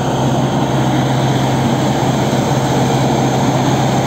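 An engine hums steadily nearby.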